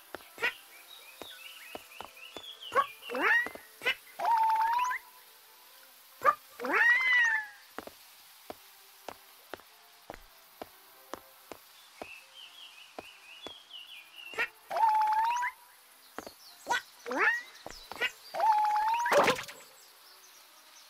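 A cartoon creature chirps and squeaks in short bursts.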